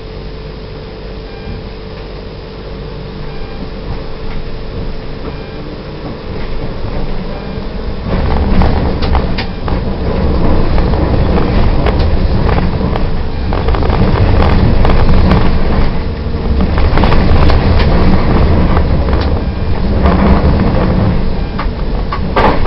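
A tram rumbles along rails, growing louder as it picks up speed.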